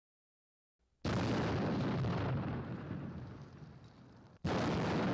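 A rocket engine roars at launch, then fades into the distance.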